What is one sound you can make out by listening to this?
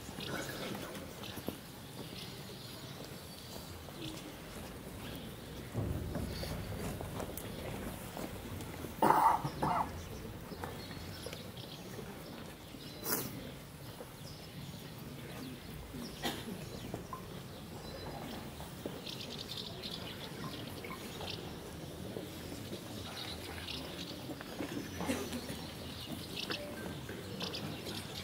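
A crowd murmurs softly outdoors.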